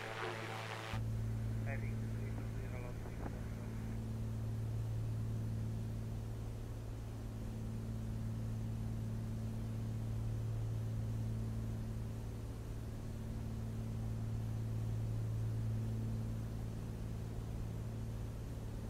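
The piston engine of a single-engine light aircraft drones in cruise.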